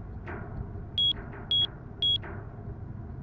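Keypad buttons beep three times.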